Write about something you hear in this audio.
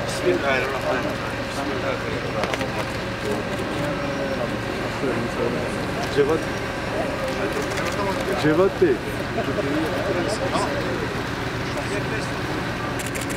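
Several men talk nearby in a busy crowd.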